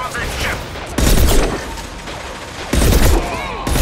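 A heavy rifle fires loud, booming shots.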